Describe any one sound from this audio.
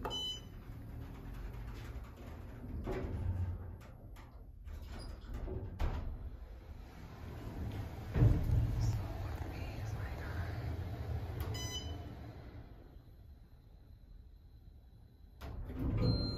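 An elevator car hums and rumbles as it moves.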